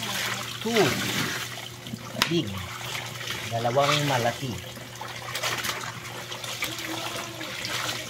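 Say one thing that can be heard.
Water pours from a tap into a tub and splashes steadily.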